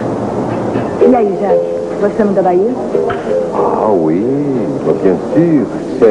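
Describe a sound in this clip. A woman talks quietly across a table.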